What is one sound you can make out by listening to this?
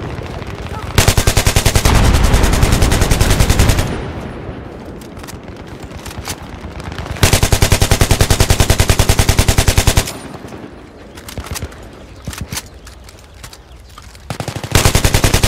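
An automatic rifle fires in long, rapid bursts.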